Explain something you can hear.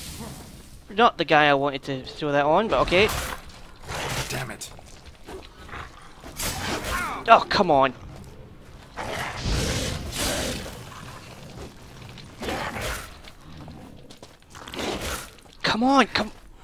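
A large beast snarls and growls fiercely.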